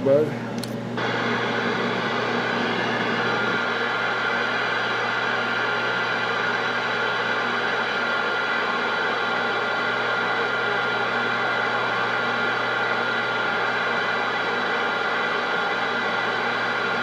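Radio static hisses steadily from a loudspeaker.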